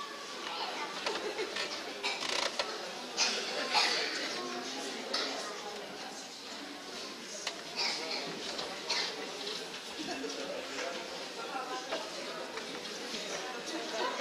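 Young children chatter and murmur in a room.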